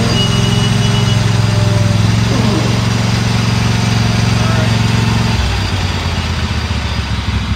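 A small engine runs steadily with a low rumble nearby.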